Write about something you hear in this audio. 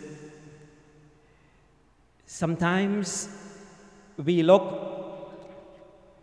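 A middle-aged man chants slowly into a microphone, his voice ringing in a reverberant room.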